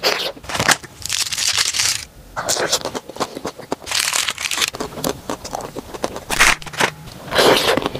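Plastic wrapping crinkles and rustles as it is torn open.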